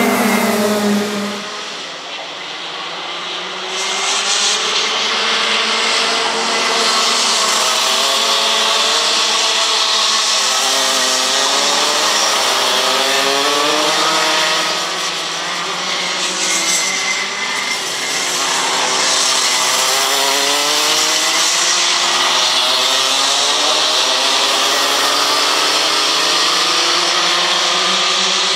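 Kart engines buzz and whine as they race past, rising and falling in pitch.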